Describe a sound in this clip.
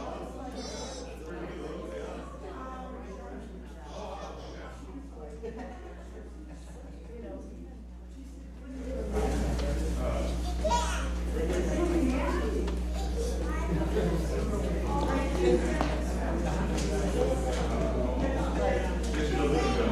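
Many men and women chat quietly in a large echoing hall.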